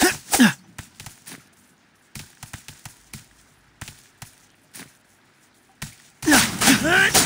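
Footsteps tap quickly across a hard floor.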